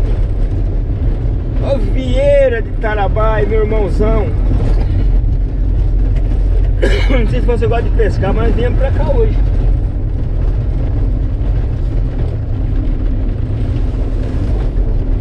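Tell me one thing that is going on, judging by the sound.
A car engine rumbles steadily inside the car.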